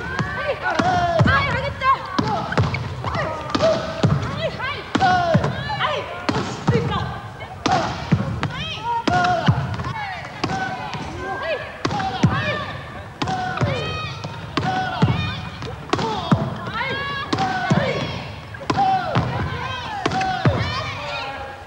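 A volleyball slaps against hands and the wooden floor.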